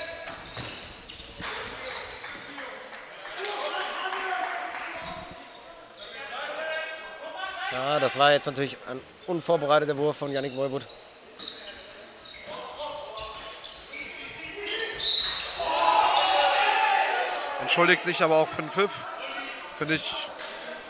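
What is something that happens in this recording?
A handball bounces on the hall floor.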